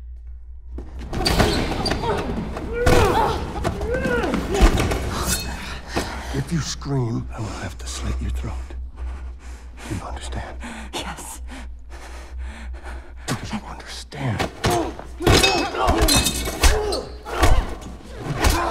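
A young woman cries out and sobs in distress close by.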